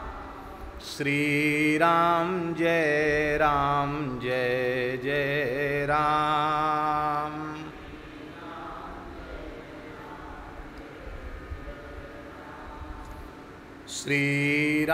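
A man chants in a deep, steady voice through a microphone.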